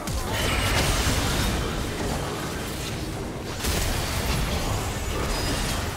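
Spell effects whoosh and crackle in a fast game fight.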